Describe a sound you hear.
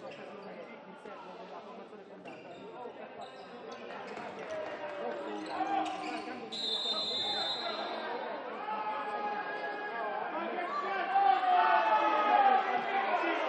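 A crowd cheers and shouts in a large echoing hall, growing louder.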